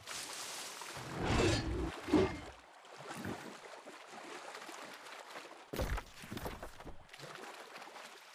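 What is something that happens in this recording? Water splashes as a figure wades through a pond.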